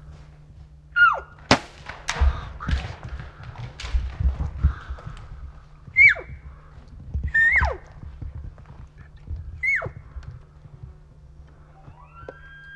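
An elk bugles several times with high, shrill, gliding whistles.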